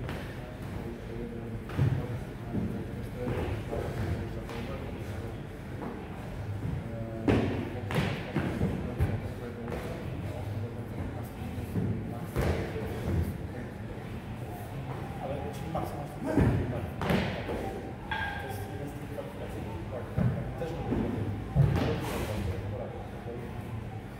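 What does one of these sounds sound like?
Bodies drop to a rubber floor with dull thumps.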